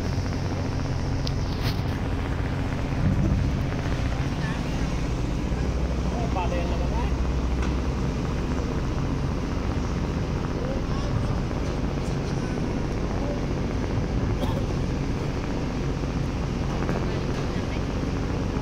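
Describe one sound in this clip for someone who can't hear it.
A ship's engine rumbles steadily throughout.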